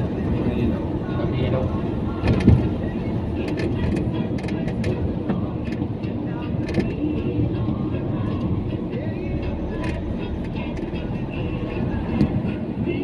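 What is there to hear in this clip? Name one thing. Tyres rumble steadily over the road.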